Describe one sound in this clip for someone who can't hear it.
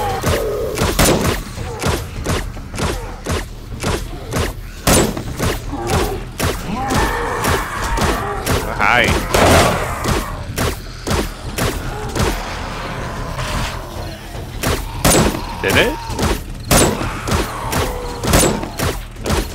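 A gun fires in sharp bursts.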